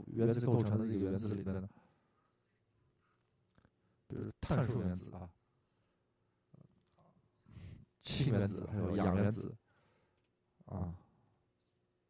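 An elderly man lectures into a microphone in short bursts with pauses.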